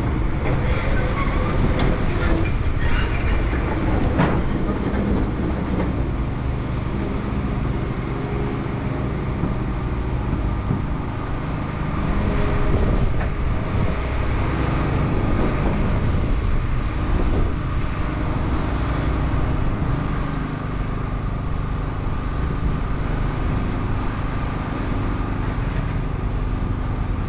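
An excavator engine rumbles steadily in the distance.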